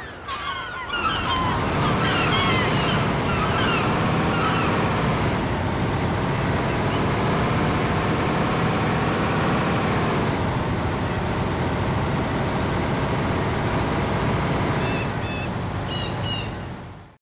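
A truck engine roars steadily, rising and falling in pitch as the truck drives.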